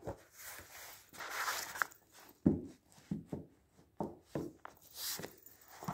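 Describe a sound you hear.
Stacked magazines knock softly against a table.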